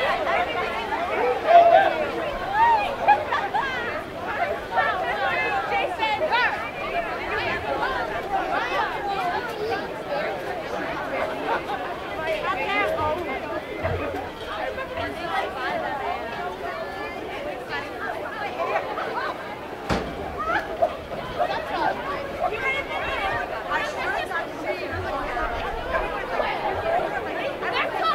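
A crowd of men and women chatter and call out in the open air.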